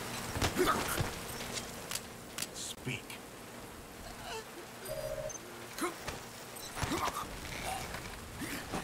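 Clothing rustles and thumps as two bodies grapple on a wooden floor.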